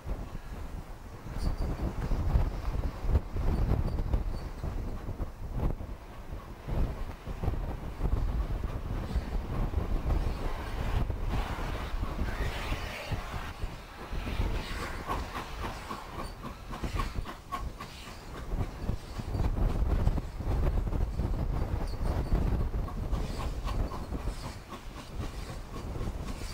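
A steam locomotive chuffs rhythmically in the distance, drawing closer.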